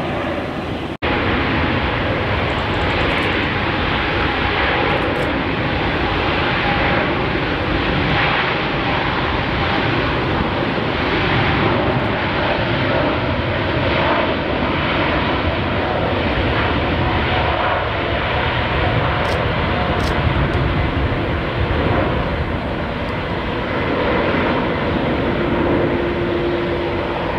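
Jet engines roar loudly and steadily as a large airliner speeds down a runway and lifts off.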